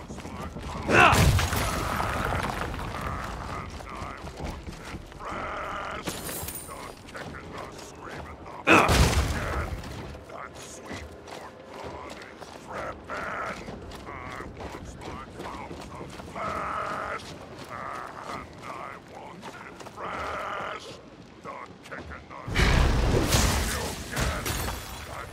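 A sword strikes and smashes wooden objects with loud crashes.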